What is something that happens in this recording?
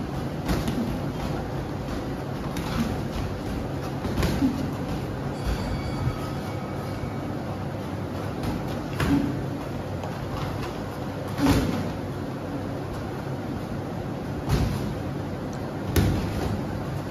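Boxing gloves thud against each other in sharp, scattered blows.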